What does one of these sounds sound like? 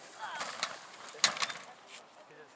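A hang glider thumps down onto the grass.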